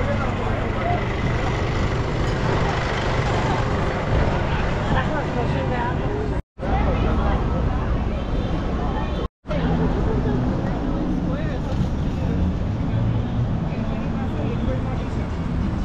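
A crowd of people chatters on a busy street.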